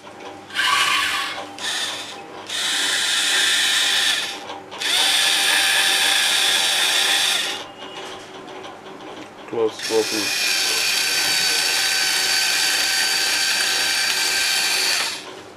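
Small electric gear motors whir loudly in repeated bursts.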